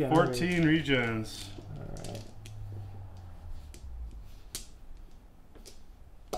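Dice clatter on a table.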